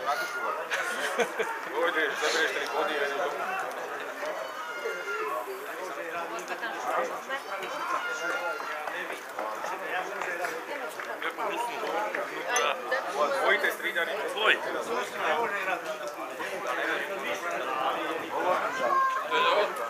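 Nearby men talk and call out with animation.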